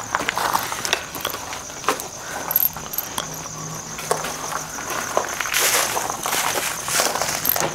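Gear on a backpack rattles and clinks.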